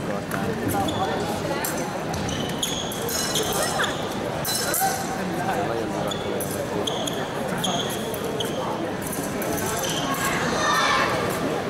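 Fencers' shoes squeak sharply on the piste.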